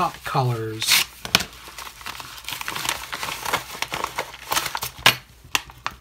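A padded paper envelope crinkles and rustles as hands handle it.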